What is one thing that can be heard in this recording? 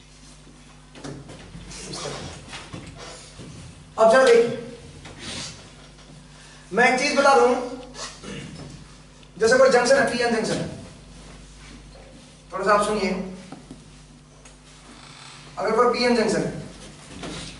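A man speaks calmly and clearly in bursts.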